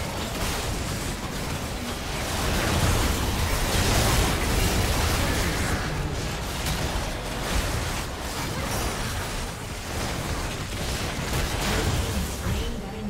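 Game spells and attacks crackle and boom in a fast fight.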